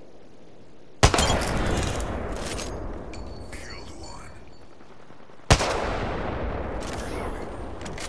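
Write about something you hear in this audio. A rifle fires two loud shots that echo away.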